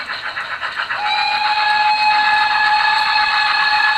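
A model steam locomotive's whistle blows with a steady high tone.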